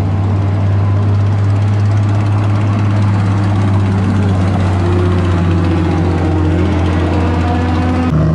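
A sports car engine rumbles deeply as the car drives slowly past close by.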